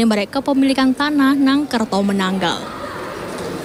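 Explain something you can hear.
A young woman speaks clearly into a microphone, like a news presenter.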